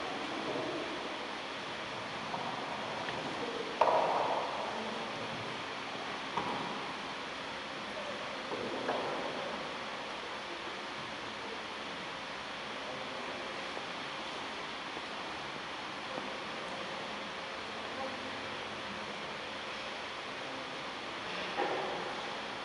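Footsteps thud and echo in a large hall.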